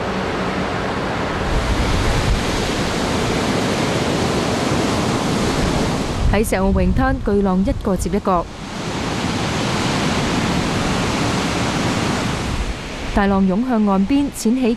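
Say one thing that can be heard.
Heavy waves crash and roar onto the shore.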